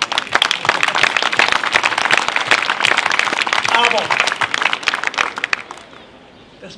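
A crowd applauds and cheers loudly outdoors.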